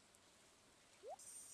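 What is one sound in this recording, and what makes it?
A short rising chime sounds as a menu opens.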